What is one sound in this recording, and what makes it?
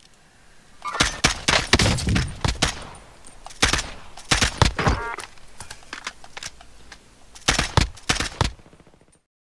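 Rifle shots crack loudly in quick bursts.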